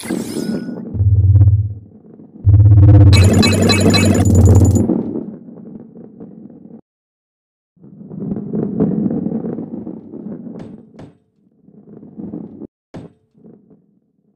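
A ball rolls and rumbles along a wooden track.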